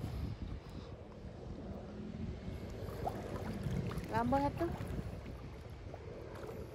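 Water laps and splashes gently around a swimmer.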